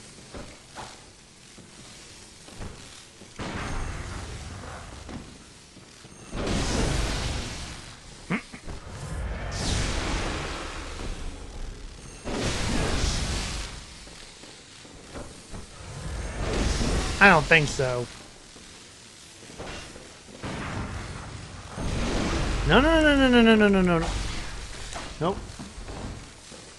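Electric bolts crackle and burst in loud bursts.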